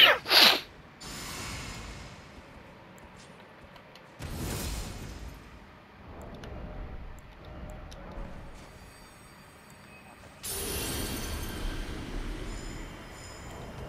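A magical spell swells with a shimmering whoosh and fades.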